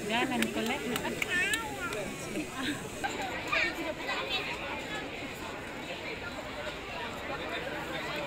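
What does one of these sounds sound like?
A crowd of men and women talks and murmurs nearby outdoors.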